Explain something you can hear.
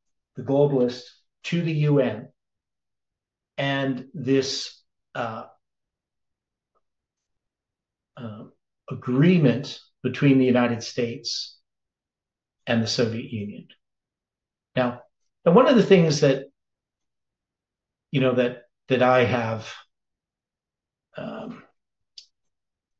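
A middle-aged man speaks calmly into a nearby microphone, with pauses.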